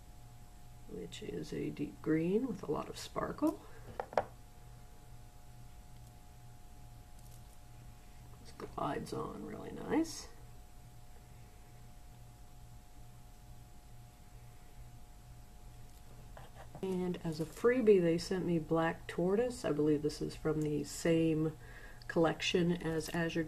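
A woman talks calmly and close by, as into a microphone.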